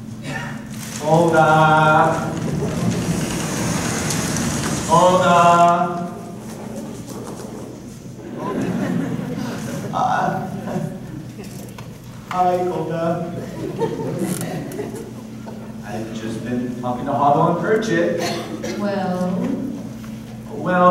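A man sings loudly on a stage in a large hall.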